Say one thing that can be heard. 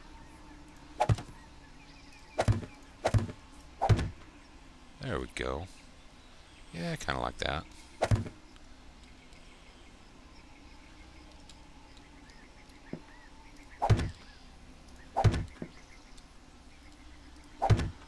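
Wooden frames are placed with short knocking thuds.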